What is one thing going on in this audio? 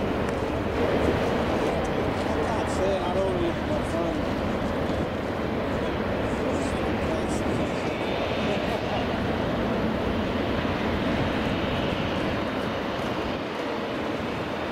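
A jet airliner's engines roar steadily as it rolls past close by.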